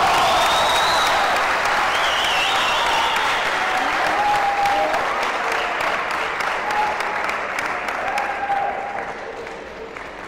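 A large crowd cheers and roars in a big echoing hall, then slowly quiets down.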